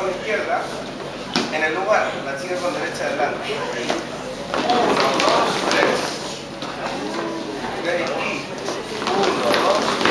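Shoes tap and shuffle on a hard floor.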